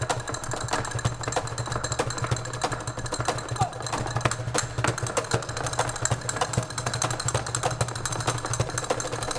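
A man beats a hand drum in a quick rhythm.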